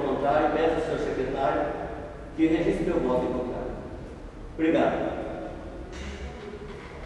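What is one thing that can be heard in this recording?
A middle-aged man speaks into a microphone in a room with some echo.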